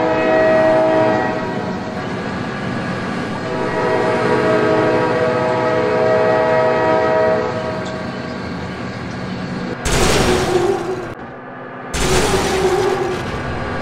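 A train rumbles along the rails.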